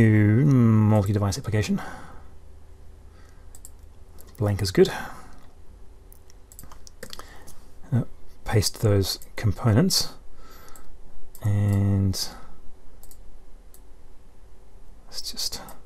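A man talks calmly and closely into a microphone, explaining.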